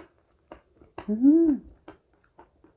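A young woman hums briefly with pleasure.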